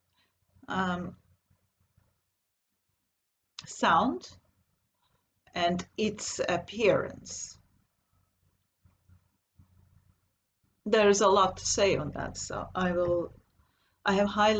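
A woman speaks calmly in short bursts, close to a computer microphone.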